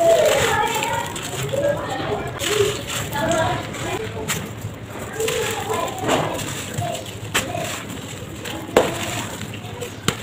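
Dry dirt pours and patters down from hands.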